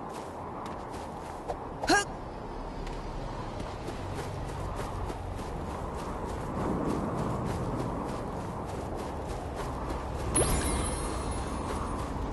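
Quick footsteps crunch on sand.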